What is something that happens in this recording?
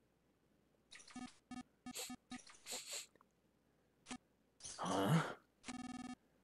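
Short electronic game beeps sound in quick bursts.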